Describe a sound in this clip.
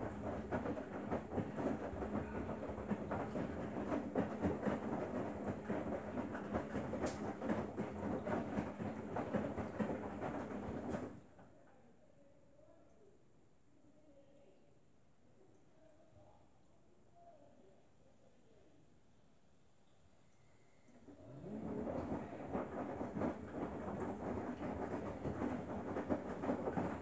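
Wet laundry sloshes and tumbles in the drum of a front-loading washing machine.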